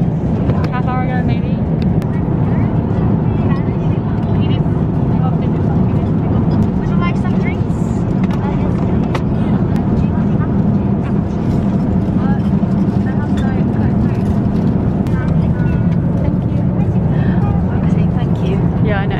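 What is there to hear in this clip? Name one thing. A steady low engine drone fills an aircraft cabin.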